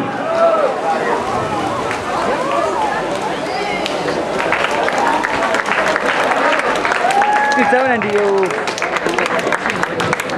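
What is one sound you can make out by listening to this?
A crowd cheers and shouts loudly in an open-air space.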